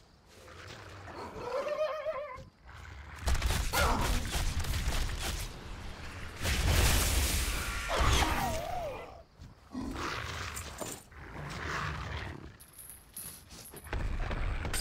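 A large beast bellows and groans.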